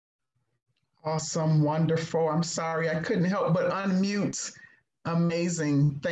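A woman speaks warmly with animation over an online call.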